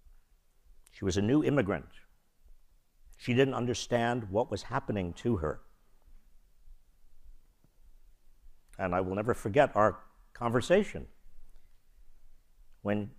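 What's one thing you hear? An elderly man speaks calmly with pauses through a microphone.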